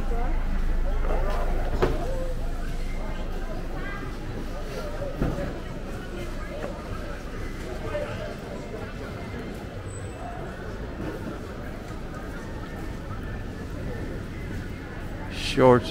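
Outdoor street noise hums steadily in the background.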